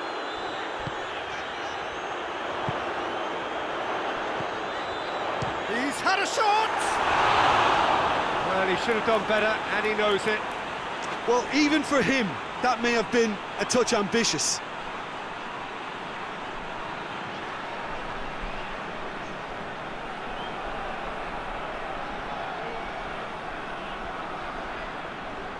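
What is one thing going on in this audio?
A stadium crowd roars steadily in a large open space.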